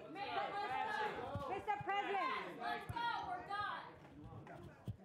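A woman speaks warmly and with animation close by.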